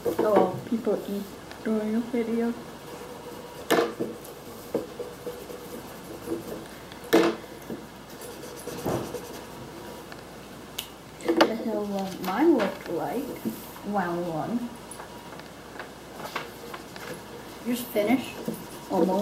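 A pencil scratches on paper.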